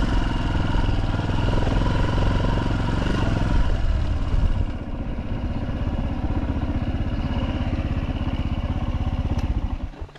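A motorcycle engine putters steadily at low speed.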